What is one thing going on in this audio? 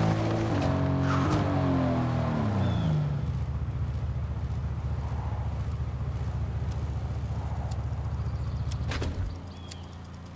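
A truck engine revs and winds down, then idles with a steady rumble.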